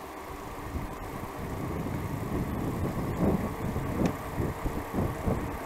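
Wind rumbles loudly past a moving bicycle.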